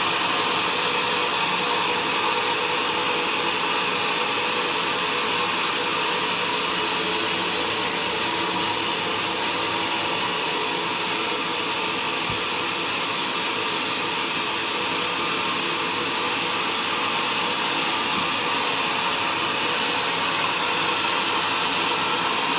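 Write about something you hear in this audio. A sawmill motor drones steadily.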